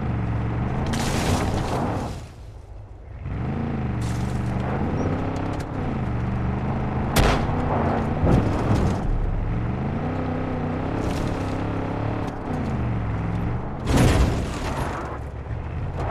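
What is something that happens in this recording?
A vehicle engine hums and revs up and down.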